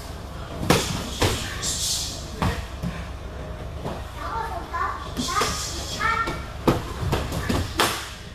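Punches and kicks thud sharply against pads, echoing in a large room.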